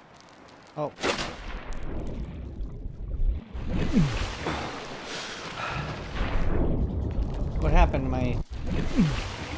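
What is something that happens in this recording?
A low underwater rumble rises and churns.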